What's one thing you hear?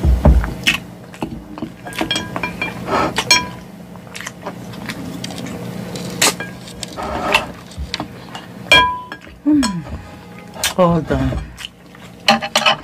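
A woman chews food wetly and loudly close to a microphone.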